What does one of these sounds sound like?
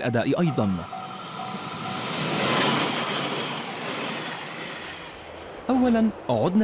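A high-speed train rushes past with a rising and fading whoosh.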